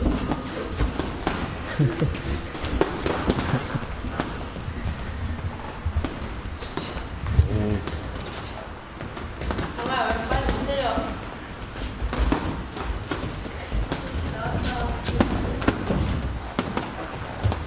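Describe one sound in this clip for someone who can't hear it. Boxing gloves thud against padded headgear and gloves in quick bursts.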